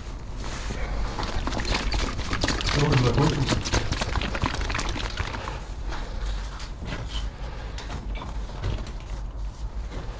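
Small objects clatter and scrape as a hand handles them close by.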